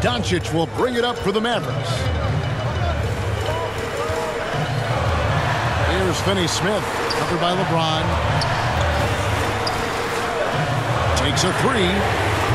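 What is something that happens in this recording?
Basketball shoes squeak sharply on a hardwood court.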